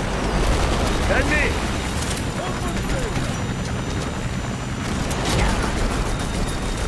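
A helicopter's rotor thumps and roars overhead.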